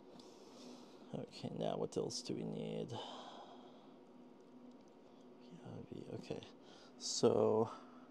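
A small board taps softly on a table.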